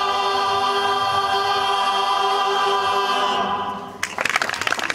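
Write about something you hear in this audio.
A choir sings a long held chord that fades out.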